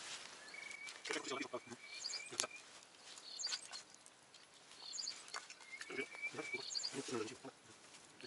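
A man speaks calmly nearby, outdoors.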